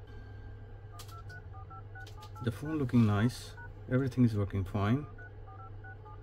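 A phone's keypad beeps with short tones as numbers are tapped in.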